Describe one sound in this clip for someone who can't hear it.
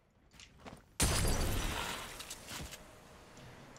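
An explosion bursts in a video game.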